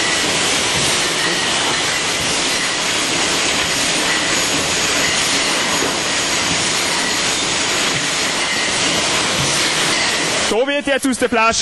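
Glass bottles clink against each other.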